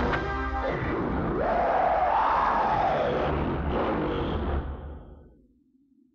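A loud explosion roars and rumbles, then slowly fades away.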